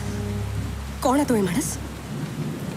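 A young woman speaks briefly in a tense, emotional voice.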